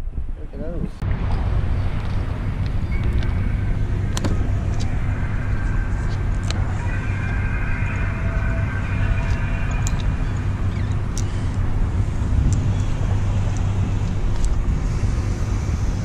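Wind blows steadily outdoors by the sea.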